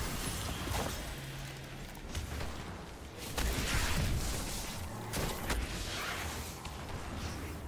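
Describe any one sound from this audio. Gunshots and energy blasts crack in quick bursts.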